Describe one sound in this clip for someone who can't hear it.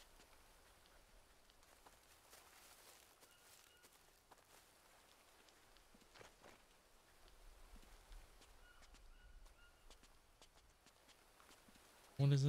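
Footsteps crunch softly over leaves and dirt.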